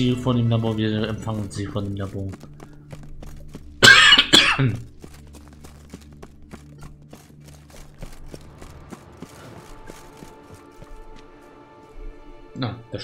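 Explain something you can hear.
Footsteps tread steadily on stone, echoing a little.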